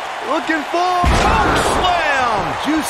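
A heavy body slams onto a wrestling ring mat with a thud.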